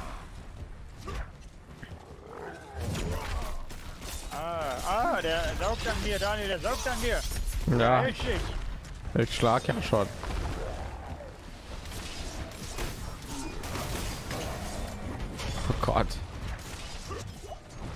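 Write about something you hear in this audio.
Blows strike and thud in a fierce fight.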